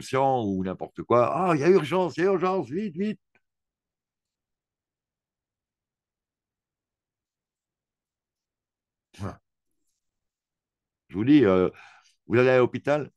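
A man speaks through a microphone in short bursts with long pauses.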